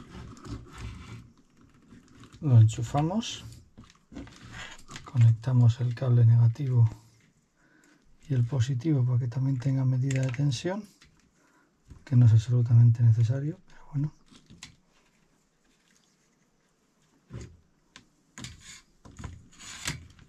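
Wire clips click as they are connected.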